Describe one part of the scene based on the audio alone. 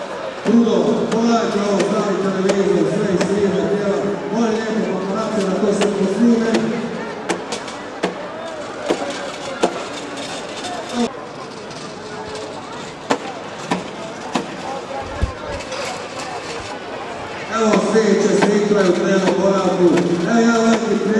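A man sings through loudspeakers outdoors.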